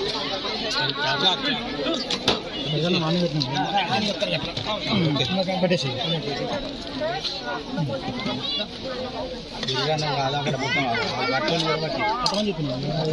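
Several men talk with each other nearby.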